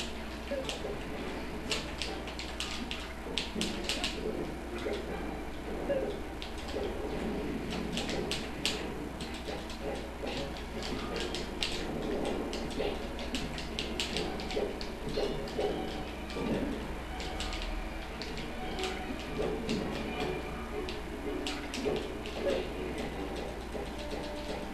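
Punches, kicks and hits from a fighting game land in rapid sharp bursts.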